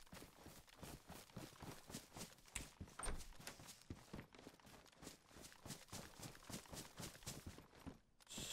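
Footsteps crunch through grass and leaves at a walking pace.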